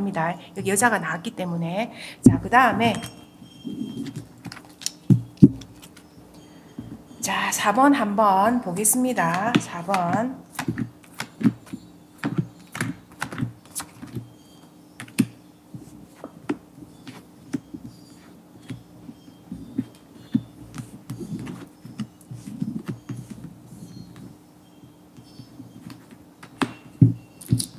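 Cards slide and tap softly onto a table.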